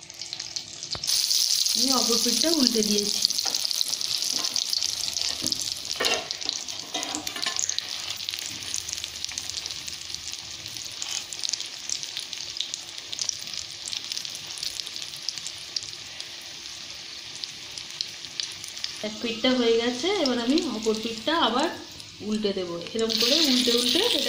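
A stuffed flatbread sizzles in oil.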